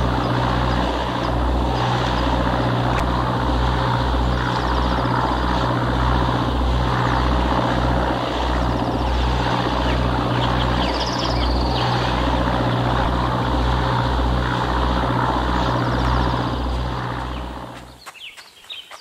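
Water rushes against a moving boat's hull.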